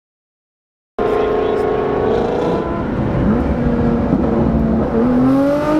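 A car engine roars steadily at speed while driving.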